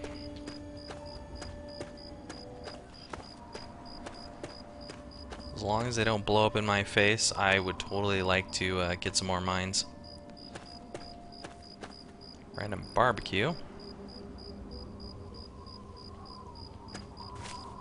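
Footsteps crunch steadily over gravel and rubble.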